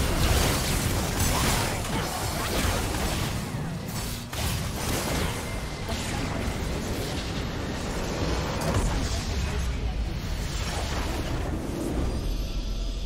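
Magic blasts and hits crackle and boom in a busy fight.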